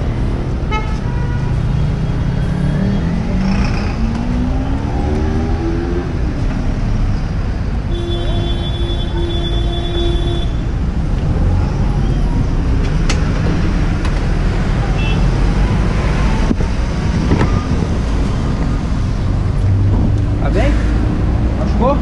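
A motorcycle engine rumbles and revs up.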